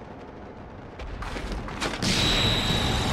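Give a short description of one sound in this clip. Armour clanks as an armoured warrior leaps into battle.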